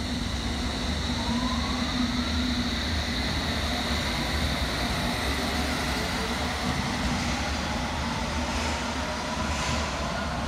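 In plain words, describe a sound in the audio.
A train's motors whine, rising in pitch as it pulls away.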